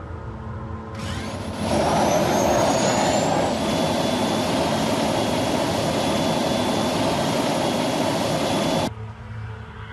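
A motorcycle engine roars steadily as the bike rides along.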